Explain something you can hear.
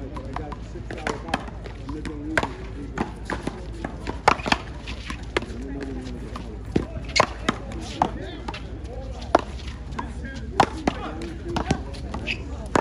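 A ball smacks sharply against paddles and a wall.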